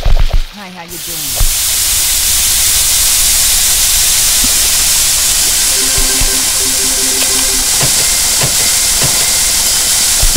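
Meat patties sizzle loudly on a hot grill.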